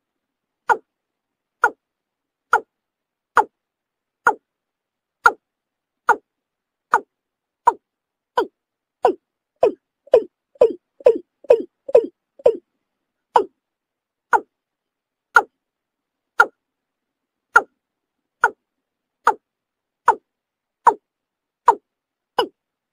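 A bird calls with short, sharp notes repeated at a steady pace, quickening briefly in the middle.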